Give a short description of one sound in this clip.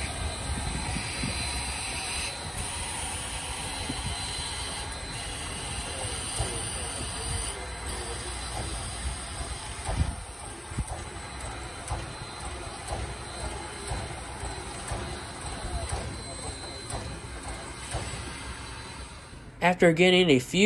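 A steam locomotive chugs and rumbles past.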